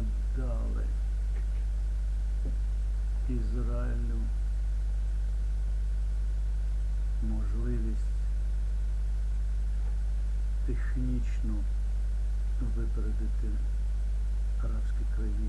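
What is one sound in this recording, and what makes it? An elderly man speaks slowly and calmly into a nearby microphone, with long pauses.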